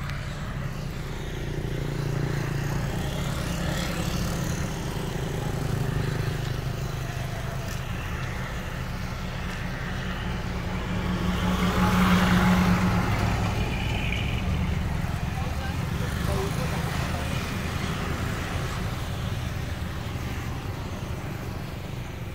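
Vehicles and motorbikes drive past on a nearby road.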